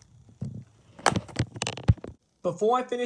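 A plastic case snaps shut with loud clicks.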